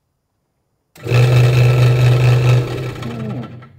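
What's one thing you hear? A scroll saw blade cuts through wood.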